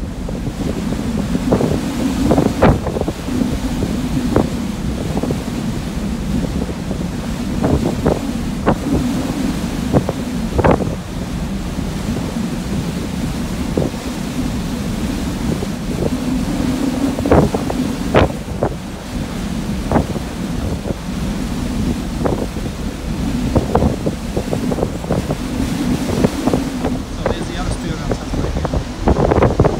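Churning water rushes and foams in a ship's wake.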